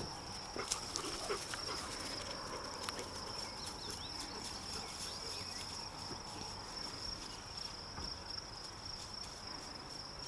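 A dog runs through grass, rustling the stems.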